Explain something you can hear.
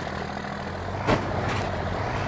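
A loud knock sounds as a buggy lands hard.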